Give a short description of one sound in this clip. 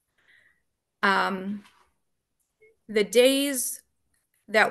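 A woman speaks in short phrases through an online call.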